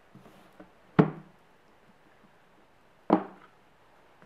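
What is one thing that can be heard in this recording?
A phone knocks down onto a hard tabletop.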